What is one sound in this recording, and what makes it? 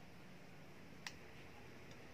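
A spoon clinks against a mug.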